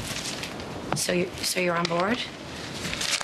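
A woman speaks quietly nearby.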